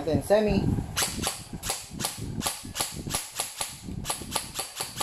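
An airsoft rifle fires a rapid series of sharp shots.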